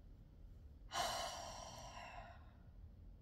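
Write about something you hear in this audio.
A woman sniffs.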